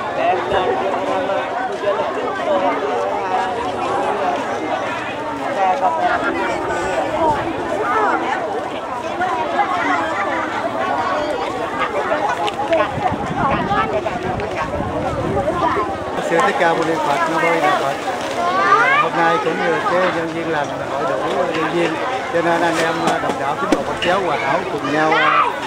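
A large outdoor crowd chatters loudly.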